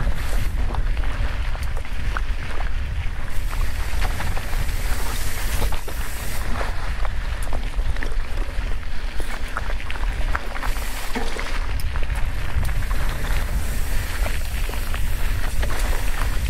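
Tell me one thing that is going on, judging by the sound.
Wind rumbles and buffets loudly against the microphone.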